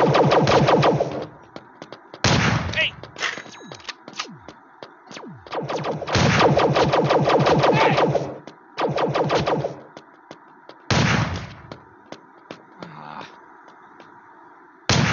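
A gun fires in rapid bursts, close by.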